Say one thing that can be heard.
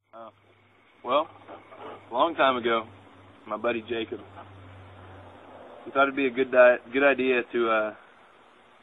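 A young man talks casually close by.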